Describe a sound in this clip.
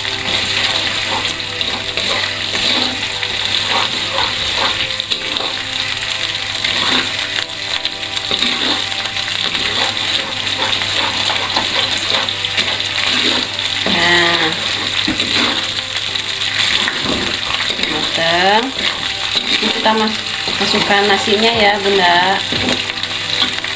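A metal spatula scrapes and stirs against a pan.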